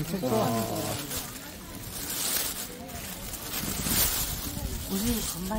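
A plastic bag rustles and crinkles as hands handle it.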